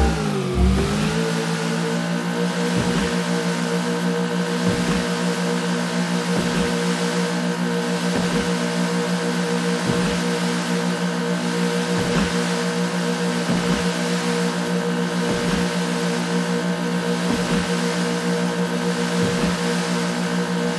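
A speedboat engine drones steadily at high speed.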